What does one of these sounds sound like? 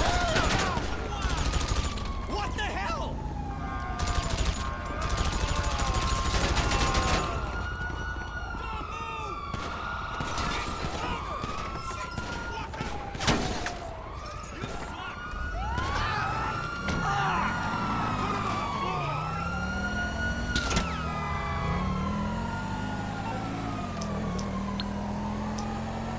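Police sirens wail, rising and falling.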